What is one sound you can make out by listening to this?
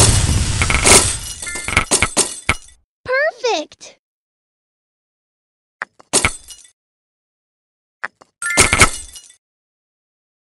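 Gems shatter and chime as a puzzle game clears matches.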